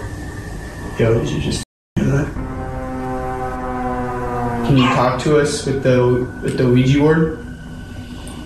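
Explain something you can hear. A young man speaks slowly in a low, drawn-out voice nearby.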